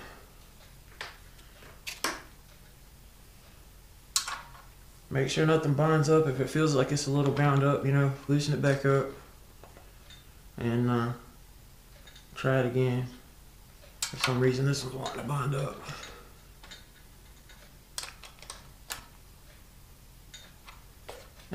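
A metal tool clicks and taps against metal.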